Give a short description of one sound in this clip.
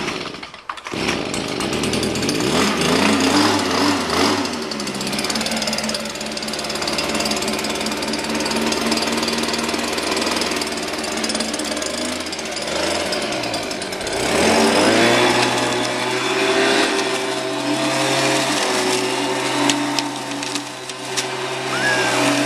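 A leaf blower engine roars loudly and revs up now and then.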